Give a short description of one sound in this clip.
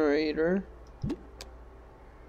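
A short electronic blip sounds as a menu selection changes.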